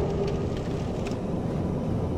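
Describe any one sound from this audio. A burst of fire crackles and roars briefly.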